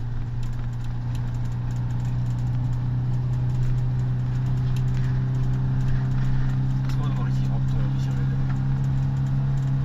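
A vehicle engine hums steadily from inside a moving vehicle.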